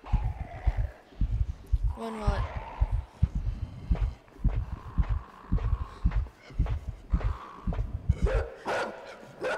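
A group of people walks across a hard floor.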